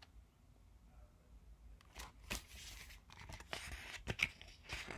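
Book pages rustle as they are turned.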